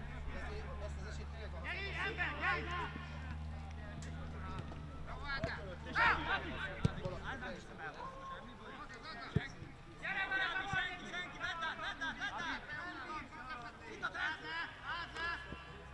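Men shout to each other across an open outdoor field.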